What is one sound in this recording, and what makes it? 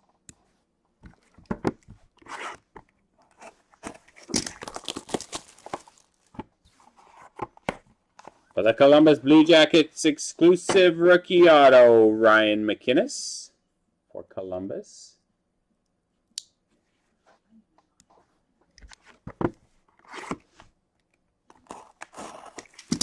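Cardboard boxes scrape and tap as they are handled.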